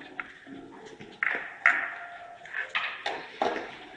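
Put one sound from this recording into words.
Billiard balls click together.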